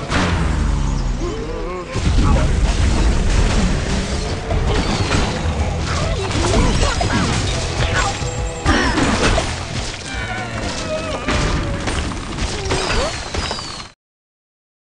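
Upbeat game music plays.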